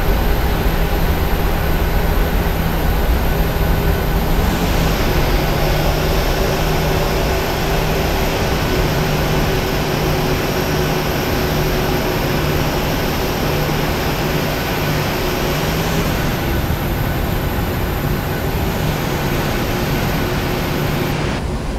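Jet engines hum and whine steadily as an airliner taxis.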